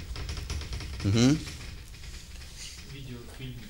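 A middle-aged man speaks briefly and calmly, close by.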